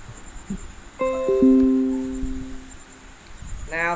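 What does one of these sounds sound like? A computer notification chime rings once.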